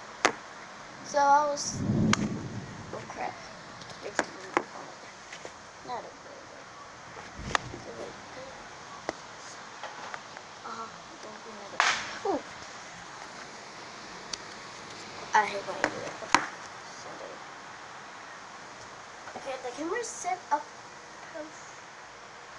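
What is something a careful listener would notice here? A young girl speaks close by, in short bursts.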